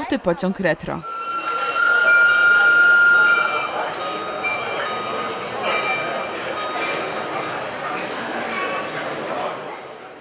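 Model train wheels squeal with a steady high whine.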